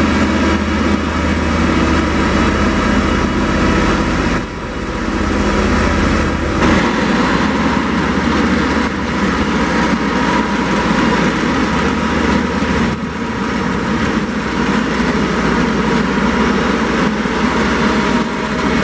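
A diesel engine of a multi-axle heavy transporter drones under load.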